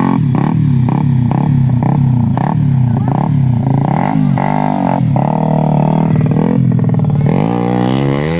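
A dirt bike engine idles and putters nearby.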